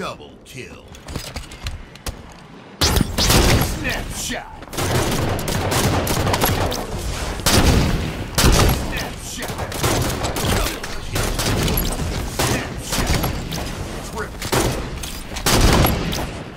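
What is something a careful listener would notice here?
Video game guns fire in rapid bursts.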